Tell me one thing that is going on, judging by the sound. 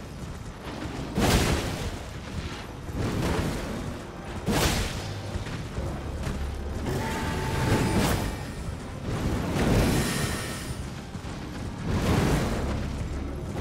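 A large beast roars and snarls.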